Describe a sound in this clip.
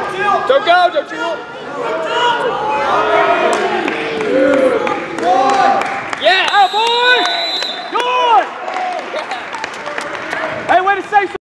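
A crowd of young men and women shouts and cheers in a large echoing hall.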